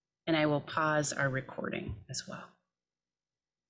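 A young woman speaks calmly through a microphone.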